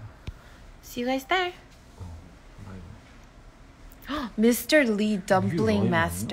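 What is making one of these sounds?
A young woman speaks close by, expressively.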